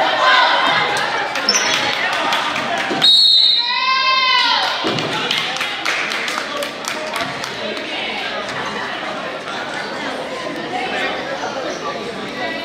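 Sneakers squeak on a hard floor in a large echoing gym.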